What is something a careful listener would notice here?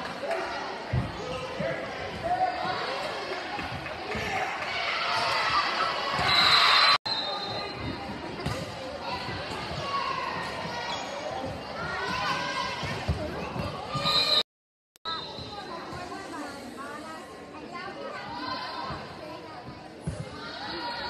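A volleyball is struck with thuds.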